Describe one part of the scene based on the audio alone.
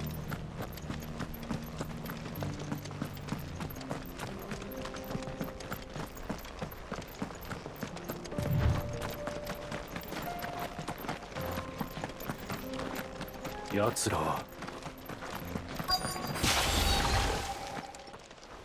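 Footsteps crunch quickly over gritty ground.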